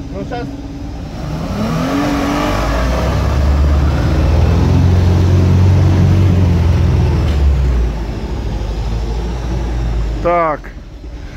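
A car engine rumbles as the car drives through thick mud.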